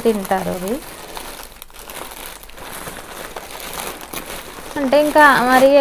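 Plastic bags rustle and crinkle close by.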